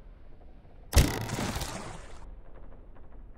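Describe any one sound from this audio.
A heavy thump sounds as a body drops and lands, with a brief rumble after it.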